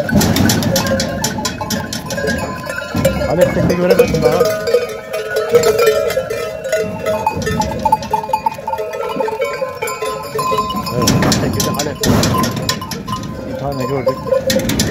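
Goats bleat loudly and repeatedly close by.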